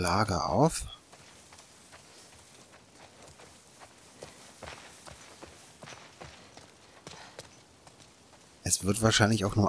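Footsteps rustle through wet grass.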